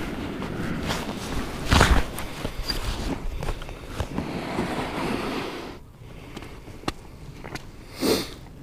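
Boots crunch and scrape on snow and ice.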